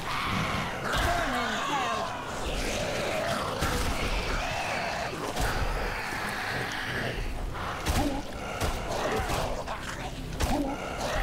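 A shotgun fires loud blasts.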